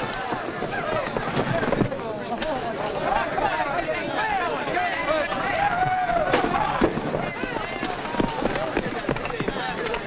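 Many men run across dirt with heavy footsteps.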